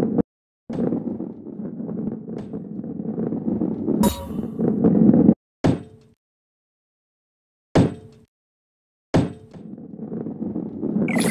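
A ball rolls along with a low, rising rumble.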